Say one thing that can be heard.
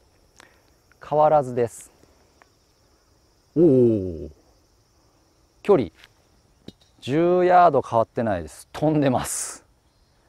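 A young man talks calmly and with animation close to a microphone.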